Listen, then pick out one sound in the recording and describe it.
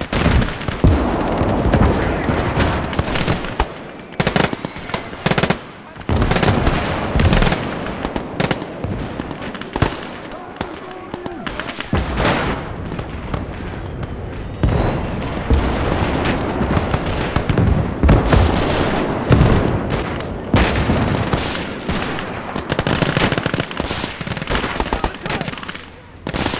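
Explosions boom loudly again and again.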